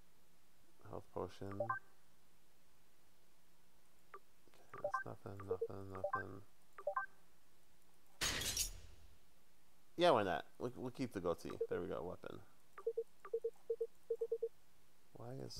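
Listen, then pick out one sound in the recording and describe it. Short electronic menu blips sound as items are selected.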